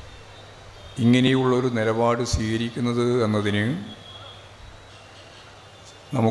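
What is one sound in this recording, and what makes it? A middle-aged man speaks forcefully into a microphone over a loudspeaker.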